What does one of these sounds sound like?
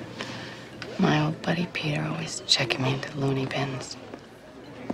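A woman speaks softly and calmly nearby.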